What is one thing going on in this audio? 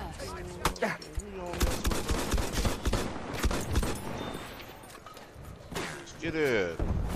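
A gun fires in bursts at close range.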